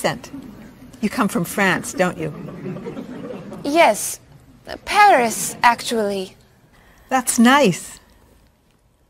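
A young woman answers softly.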